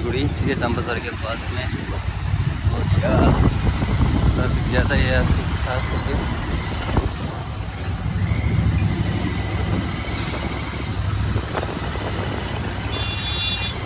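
Wind rumbles against a microphone on a moving motorcycle.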